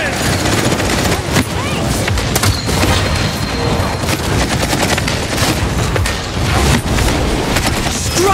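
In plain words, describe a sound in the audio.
Fiery magic blasts crackle and burst in quick succession.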